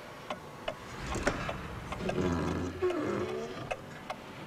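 A small glass clock door creaks and rattles open.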